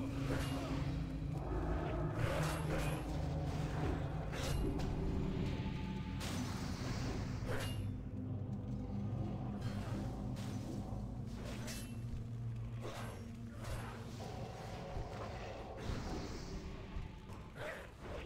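Magic spells burst and crackle in a fight.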